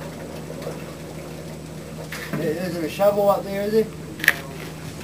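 Water gushes and splashes steadily from a leaking pipe.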